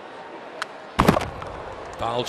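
A ball smacks into a catcher's mitt with a sharp pop.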